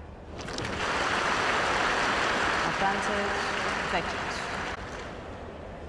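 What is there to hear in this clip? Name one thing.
A large crowd applauds in a stadium.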